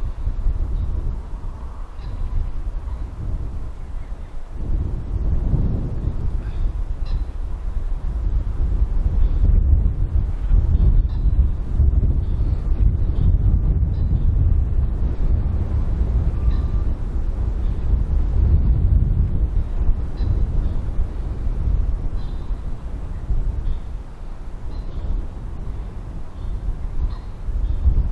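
A large flock of birds chirps faintly in the distance.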